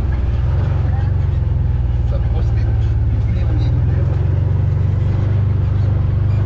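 An off-road vehicle's engine rumbles steadily at close range.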